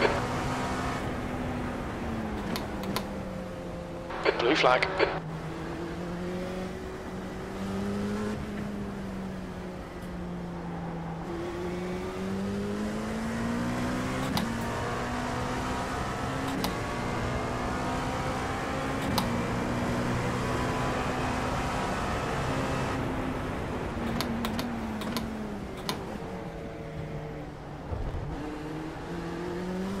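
A racing car engine drones and shifts pitch as it speeds up and slows down.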